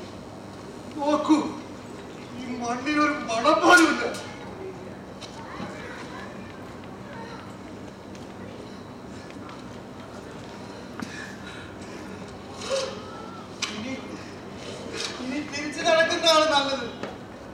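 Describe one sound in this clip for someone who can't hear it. Men call out loudly in a large, echoing space.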